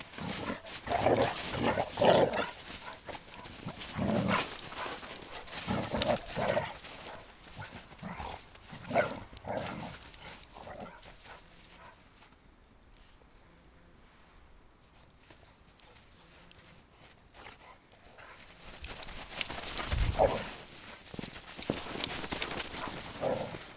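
Dogs growl and yelp as they wrestle playfully.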